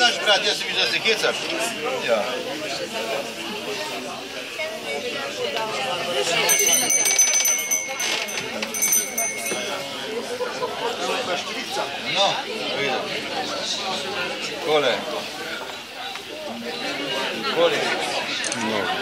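A crowd of adults and children chatters nearby.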